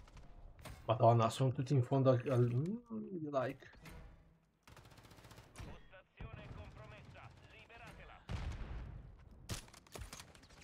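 Gunshots and explosions crack from a video game.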